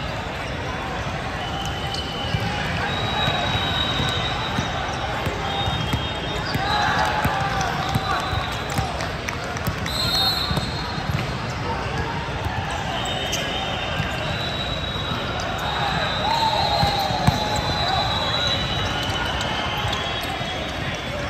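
A large echoing hall is filled with the chatter and shouts of many players and spectators.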